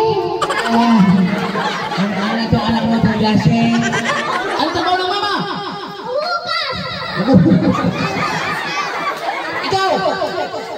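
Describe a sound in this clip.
A man speaks with animation through a microphone and loudspeaker.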